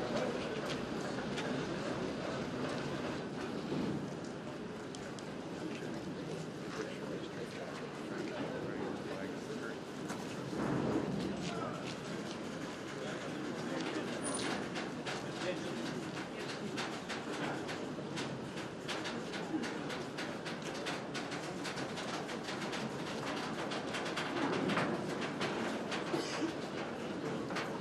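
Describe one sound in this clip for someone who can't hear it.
A heavy train rumbles slowly along a track outdoors.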